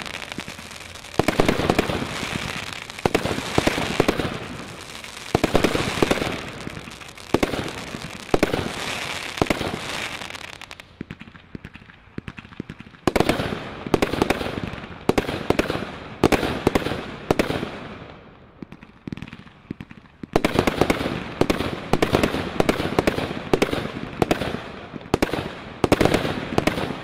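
A firework tube launches shots with repeated sharp thumps.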